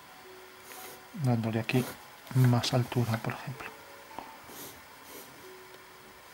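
A pencil scratches across paper in short strokes.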